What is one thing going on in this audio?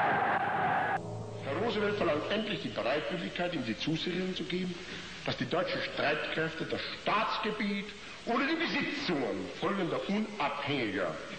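A man delivers a forceful speech through a loudspeaker in a large echoing hall.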